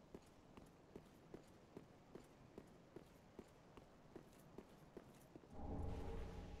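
Armoured footsteps clink quickly on stone.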